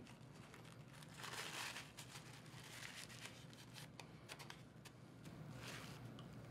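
A paper tissue rustles and crinkles.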